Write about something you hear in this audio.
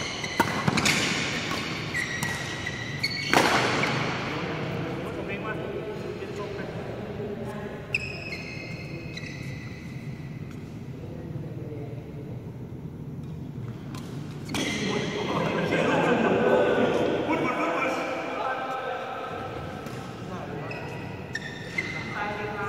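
Rackets smack a shuttlecock back and forth in an echoing hall.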